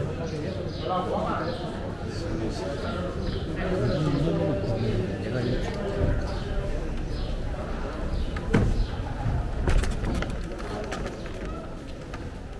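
A crowd of people chatters close by.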